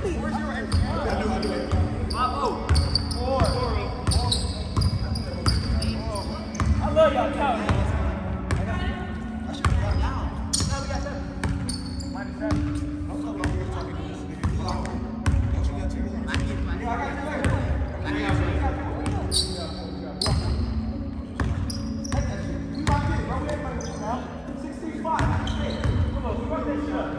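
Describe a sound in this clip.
Young people call out and talk loudly in a large echoing gym.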